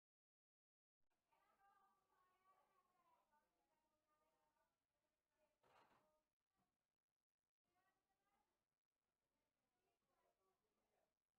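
Men and women chatter nearby in a crowded room.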